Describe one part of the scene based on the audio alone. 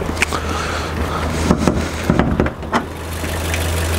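A car bonnet clicks open.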